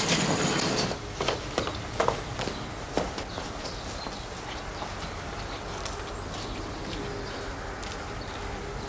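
Footsteps of one man tap on concrete.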